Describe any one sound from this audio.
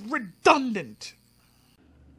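A man speaks loudly and close to a microphone.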